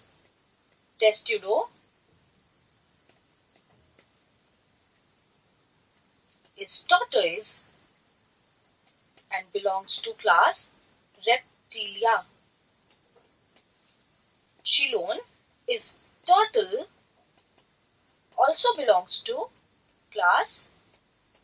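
A young woman speaks calmly through a microphone, in short phrases with pauses.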